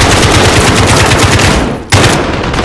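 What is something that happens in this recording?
An automatic rifle fires rapid bursts of shots.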